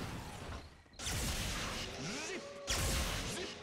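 A magic beam blasts with a roaring burst.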